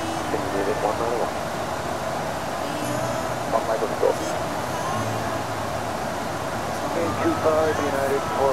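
A steady engine and air roar fills an aircraft cabin.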